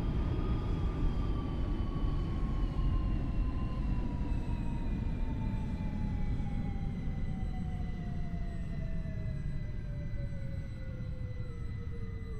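A train's electric motor whines, its pitch slowly falling as it slows down.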